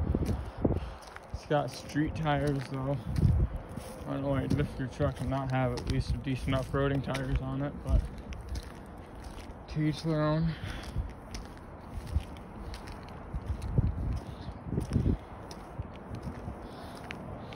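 Footsteps crunch over snow and pavement.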